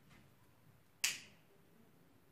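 A lighter clicks sharply once.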